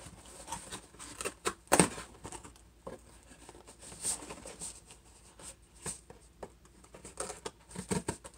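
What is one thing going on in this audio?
Tape tears and scrapes off a cardboard box.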